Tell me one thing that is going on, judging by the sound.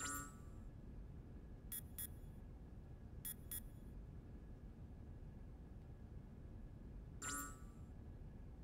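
Short electronic menu blips chime a few times.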